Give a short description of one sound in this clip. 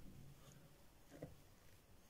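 A spatula scrapes softly across frosting.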